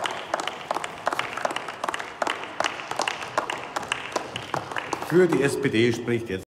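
A small group of people applaud with scattered clapping in a large hall.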